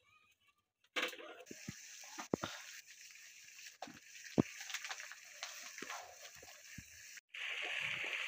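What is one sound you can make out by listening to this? Water bubbles and boils in a pot.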